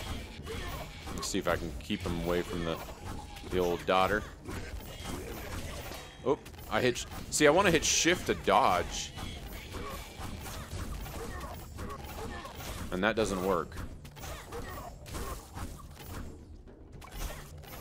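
Blades swish and strike in quick combat.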